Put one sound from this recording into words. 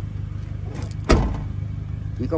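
A car tailgate thumps shut.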